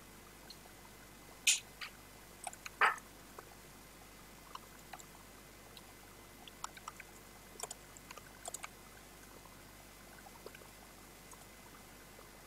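Keyboard keys click in short bursts of typing, close by.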